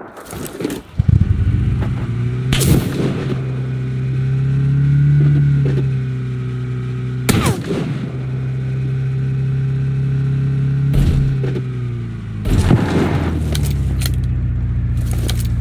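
A car engine starts and drones steadily while driving.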